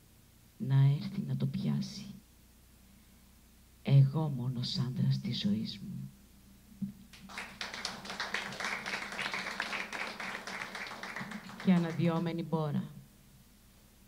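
A woman speaks into a microphone, her voice carried over loudspeakers.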